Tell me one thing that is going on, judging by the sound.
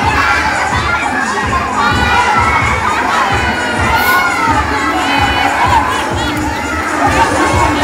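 A crowd of children shout and chatter excitedly all around.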